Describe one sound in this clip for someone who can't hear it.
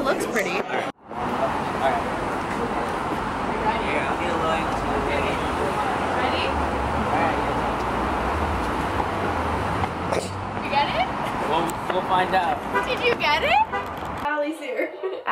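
Traffic and street noise hum steadily outdoors.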